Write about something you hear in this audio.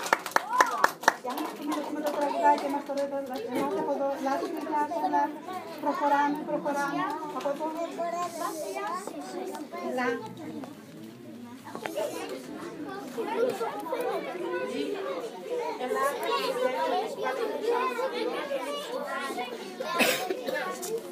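A group of young children sing together in a hall.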